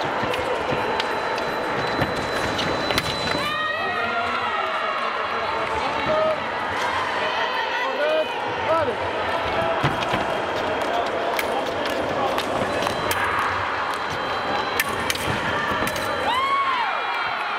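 Fencing blades clash and clink.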